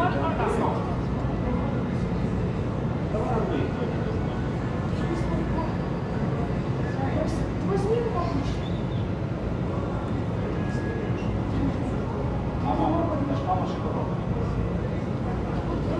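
A young woman answers calmly from behind a counter.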